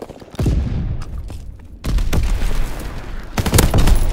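A heavy gun fires loud shots.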